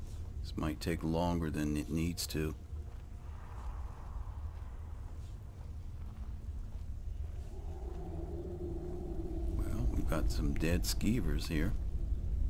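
A low magical hum crackles steadily.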